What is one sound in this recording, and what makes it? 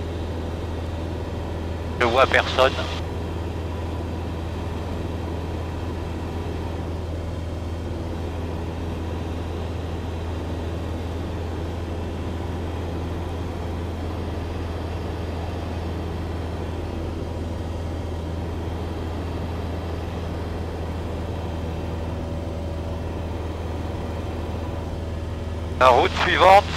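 A small plane's engine drones steadily up close.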